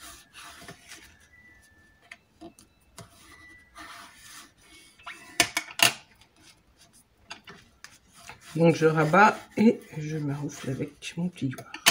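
A bone folder rubs and scrapes across paper.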